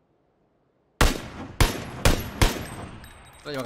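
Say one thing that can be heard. Loud rifle shots crack in quick succession.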